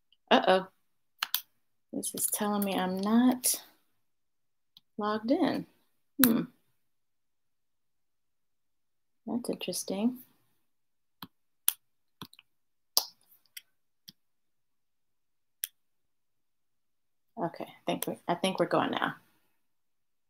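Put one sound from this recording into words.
A woman speaks calmly and close to a microphone, with pauses.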